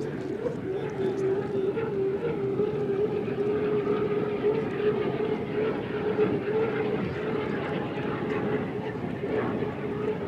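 A racing boat's engine roars steadily at high speed.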